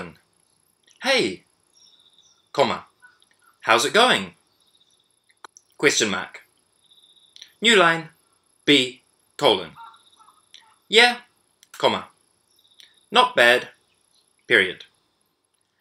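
A young man speaks slowly and clearly into a close microphone, in short phrases with pauses.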